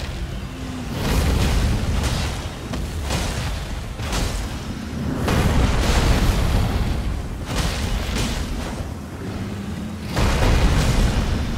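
A huge dragon roars loudly.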